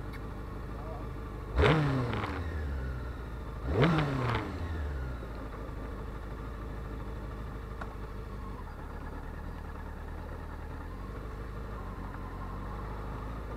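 An inline-four sport bike engine rumbles along at low speed.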